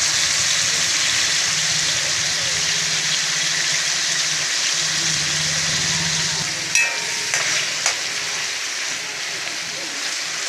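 Vegetables sizzle in hot oil in a pan.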